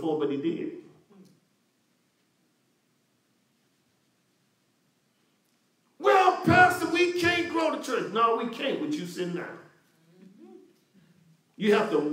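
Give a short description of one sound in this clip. A man speaks calmly into a microphone, with pauses.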